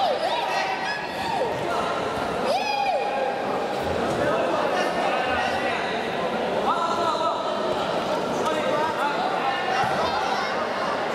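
Spectators and coaches shout loudly in a large echoing hall.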